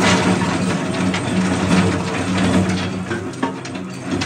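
Crushed stones pour and rattle down a metal chute onto a pile.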